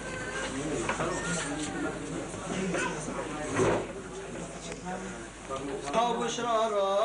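A crowd of men murmurs and talks nearby.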